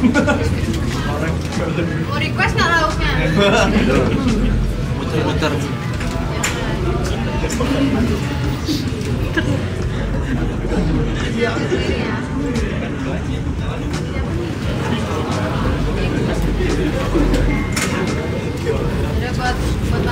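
A crowd of young men and women chatter and laugh close by.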